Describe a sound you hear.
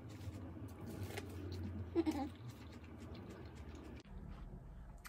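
A woman bites and chews corn on the cob noisily close by.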